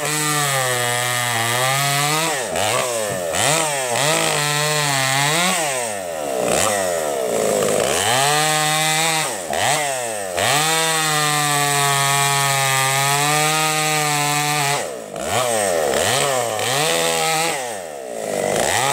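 A chainsaw engine roars, revving up and down as it cuts through logs.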